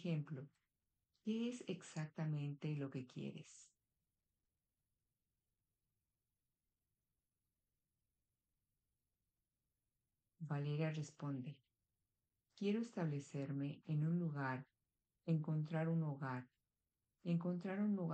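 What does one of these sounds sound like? A woman speaks calmly over an online call, pausing between phrases.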